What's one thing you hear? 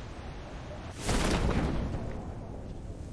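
A parachute snaps open with a loud whoosh.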